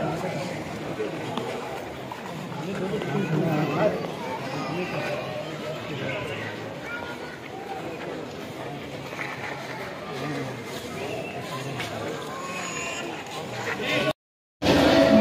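A dense crowd of men murmurs and calls out close by.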